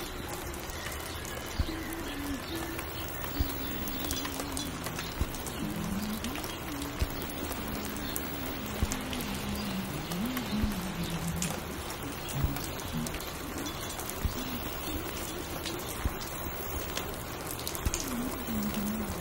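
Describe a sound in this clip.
Music plays from a record player.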